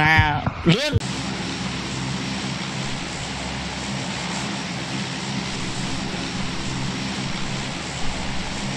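A plane engine drones steadily.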